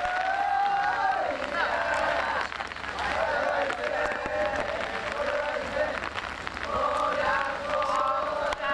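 Rain patters on the wet ground.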